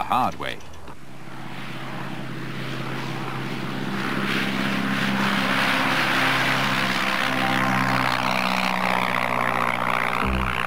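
A small propeller plane's engine drones steadily and grows louder as it takes off.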